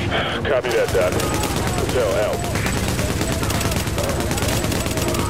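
An automatic rifle fires in rapid bursts.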